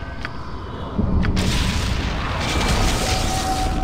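A magic spell bursts with a loud shimmering rush.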